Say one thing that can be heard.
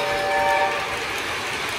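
A model train whistle toots briefly.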